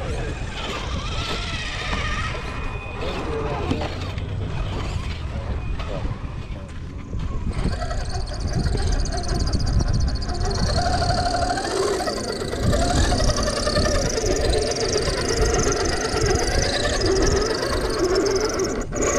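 Tyres spin and scrape on dirt and stone.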